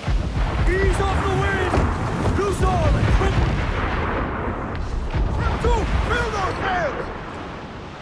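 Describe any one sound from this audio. Men sing together loudly.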